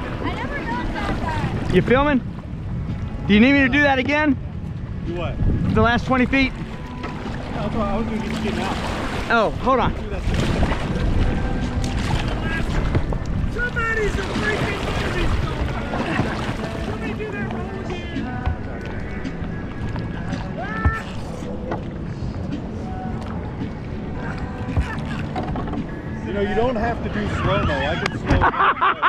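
Water rushes and splashes steadily around a kayak.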